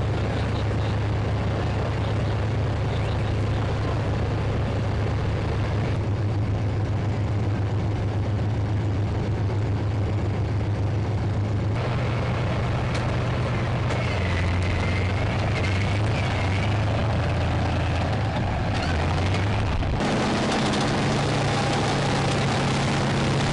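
A tank engine rumbles loudly and steadily.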